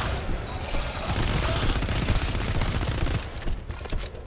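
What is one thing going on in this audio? A gun fires a quick burst of loud shots.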